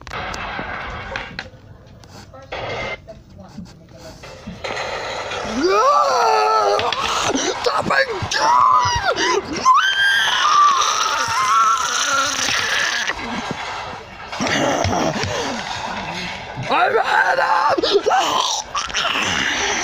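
A soft toy scrapes and taps on a wooden table.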